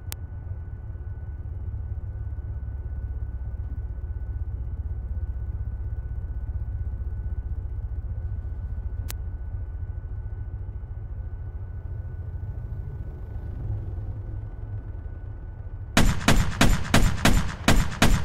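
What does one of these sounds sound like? A low aircraft engine drones steadily.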